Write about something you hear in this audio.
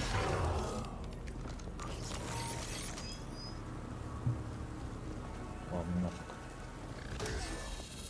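Video game gunfire and effects crackle and thump.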